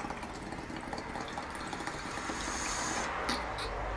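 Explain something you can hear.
Water bubbles in a bong.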